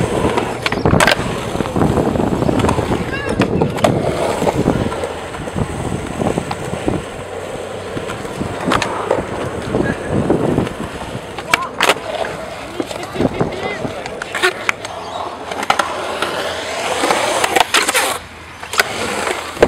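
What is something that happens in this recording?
A skateboard clacks sharply against concrete.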